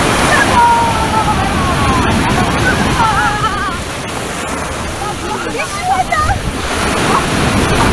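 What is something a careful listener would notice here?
Waves crash and wash onto a beach.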